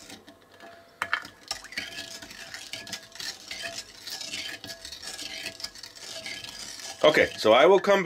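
A spoon stirs a thick liquid and taps softly against a glass bowl.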